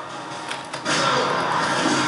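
Gunfire rattles loudly in a game.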